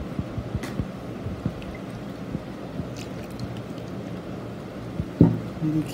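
Liquid pours into a bowl.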